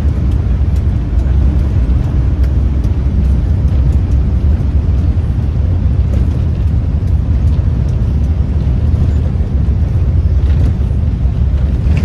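A bus engine rumbles low and steady as the bus drives along.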